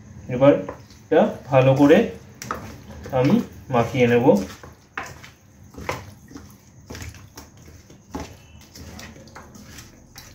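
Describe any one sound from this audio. Hands squelch and slap as they mix raw meat in a metal bowl.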